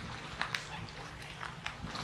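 A paddle splashes softly in the water far off.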